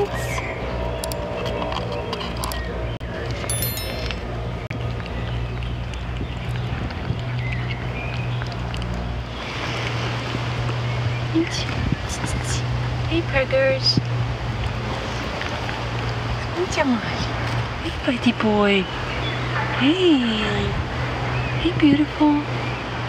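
A cat purrs steadily close by.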